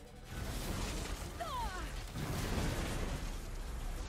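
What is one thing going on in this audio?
Electricity crackles and sizzles.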